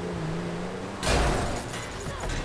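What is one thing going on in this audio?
A car crashes into a post with a loud bang.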